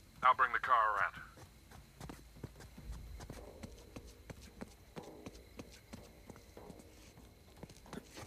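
Footsteps run quickly on stone.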